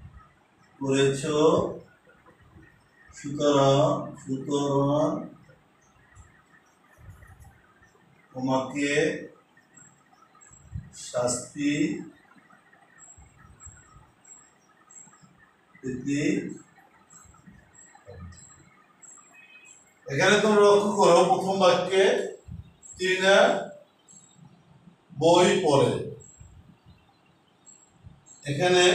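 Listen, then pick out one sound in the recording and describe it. An elderly man speaks calmly in bursts, close by.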